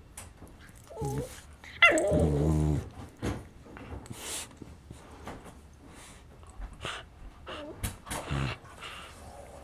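Two dogs growl playfully while tugging at a toy.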